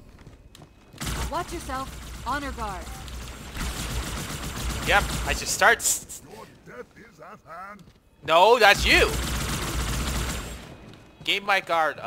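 Energy weapons fire in rapid bursts with buzzing zaps.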